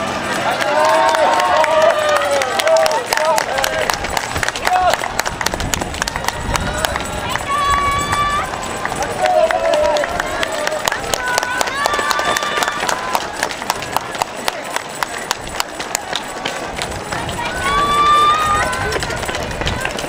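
An elderly man cheers loudly close by.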